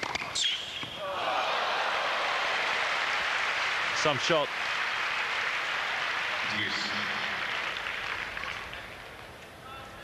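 A crowd applauds and cheers in a large arena.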